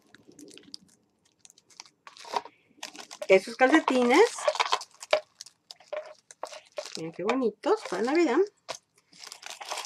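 Plastic and foil wrapping crinkles and rustles as it is handled.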